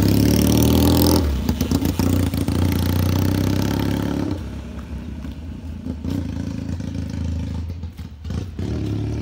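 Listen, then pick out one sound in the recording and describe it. A motorcycle engine rumbles loudly nearby and fades as the bike rides away.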